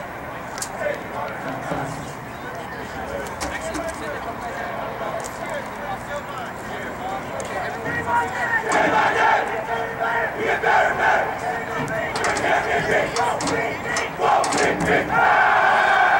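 A young woman speaks loudly to a huddled team, outdoors.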